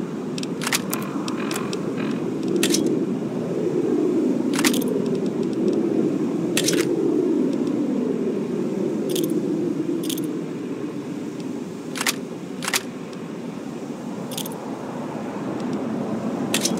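Soft electronic clicks sound as items in a game menu are selected.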